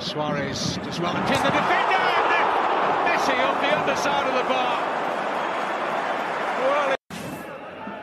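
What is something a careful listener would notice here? The stadium crowd swells into a loud excited roar.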